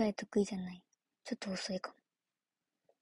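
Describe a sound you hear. A young woman speaks briefly and calmly, close by.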